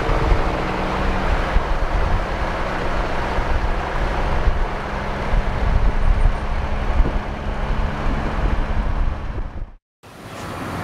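A truck engine rumbles steadily as the truck drives past.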